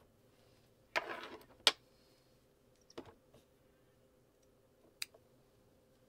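Hands click plastic parts of a yarn winder into place.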